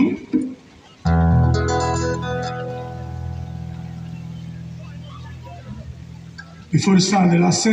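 An electric guitar strums a chord that rings out and slowly fades.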